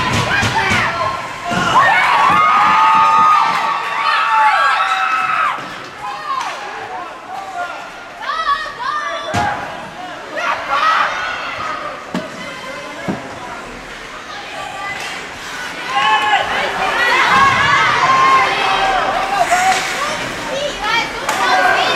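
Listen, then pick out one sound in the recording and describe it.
A crowd of spectators shouts and cheers loudly in an echoing rink.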